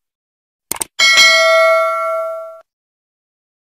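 A small bell chimes brightly and rings out.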